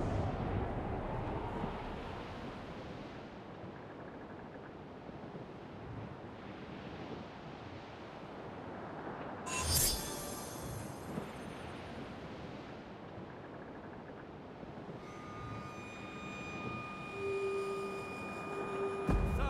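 Waves wash and splash steadily against a ship's hull.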